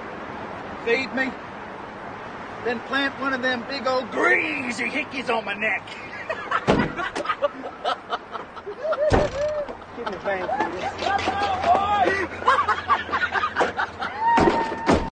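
Two young men talk casually outdoors.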